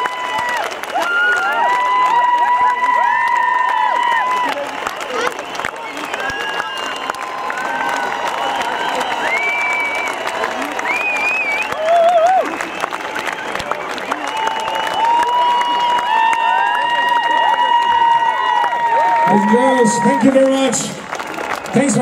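A large outdoor crowd cheers and whistles loudly.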